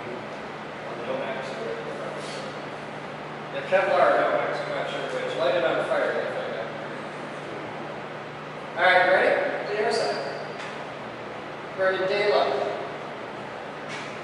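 Men talk nearby, with short bursts of speech and pauses.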